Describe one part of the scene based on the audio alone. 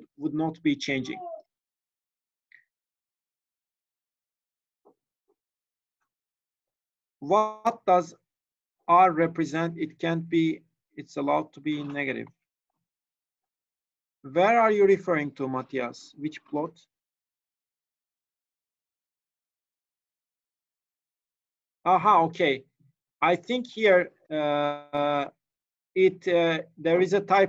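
A young man speaks calmly into a microphone, heard as if over an online call, with long pauses.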